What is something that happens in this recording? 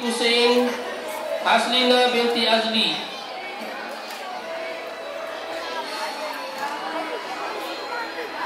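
A man speaks into a microphone over a loudspeaker in a large echoing hall.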